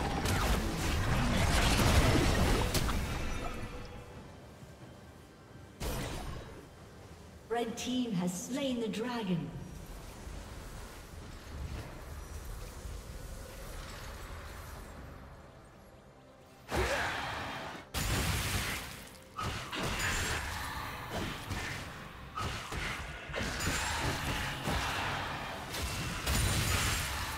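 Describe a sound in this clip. Magic attacks whoosh and crackle in a game fight.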